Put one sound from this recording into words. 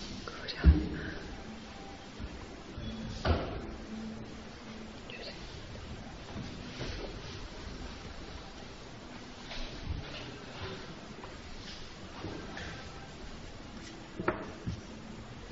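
Brushes and pencils tap and scrape on paper.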